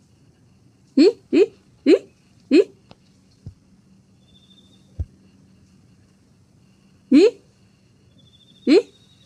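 A squirrel gives short, sharp chirps now and then.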